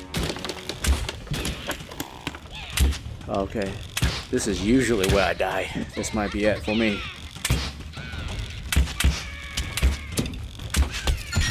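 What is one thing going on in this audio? Arrows thud into targets.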